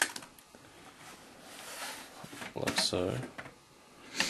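A metal drive cage scrapes and clicks into place.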